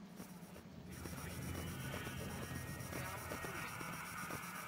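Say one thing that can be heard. Static hisses and crackles from a radio scanner.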